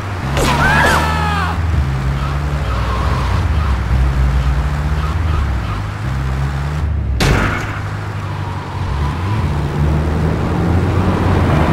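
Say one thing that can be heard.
A truck engine drones steadily, its pitch shifting as it drives.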